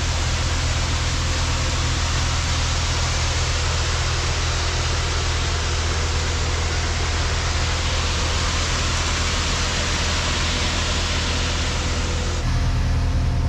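Wet concrete pours and slides down a metal chute.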